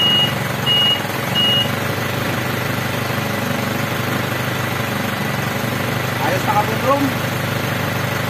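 A truck engine idles.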